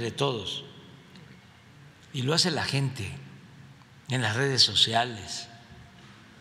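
An elderly man speaks slowly and calmly into a microphone, in short phrases with pauses.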